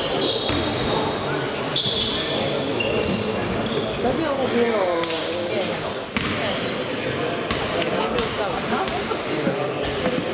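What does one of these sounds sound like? Voices and shouts echo in a large hall.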